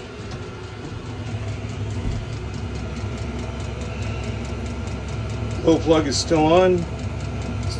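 A heater hums steadily.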